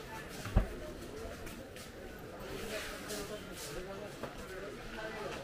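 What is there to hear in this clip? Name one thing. People chatter faintly in the background.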